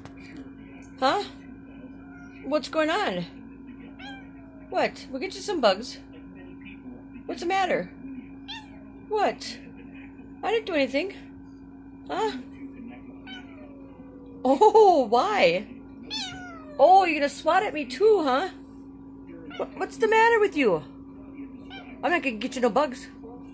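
A cat meows and chirps repeatedly, close by.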